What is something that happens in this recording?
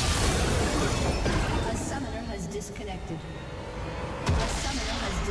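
Magic blasts crackle and zap in a fast battle.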